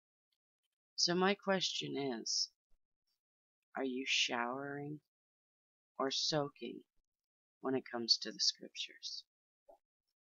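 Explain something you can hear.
A middle-aged woman speaks calmly into a headset microphone, in short bursts with pauses.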